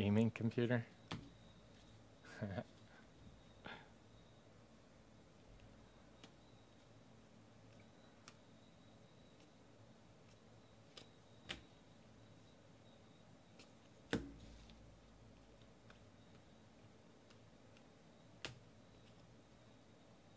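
Trading cards softly slide and flick against each other as they are sorted by hand.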